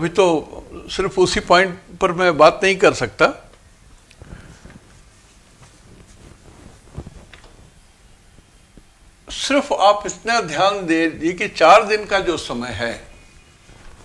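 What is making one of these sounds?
An elderly man speaks with animation through a microphone.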